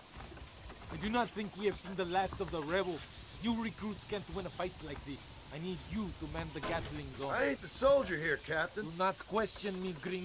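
A man speaks firmly.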